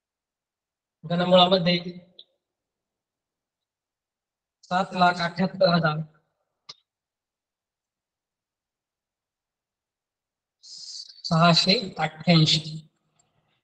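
A man speaks clearly in short phrases, as if explaining to a class.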